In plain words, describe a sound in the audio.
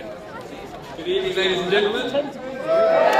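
A man speaks cheerfully through a loudspeaker.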